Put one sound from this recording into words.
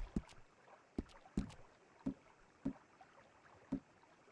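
A menu clicks softly several times.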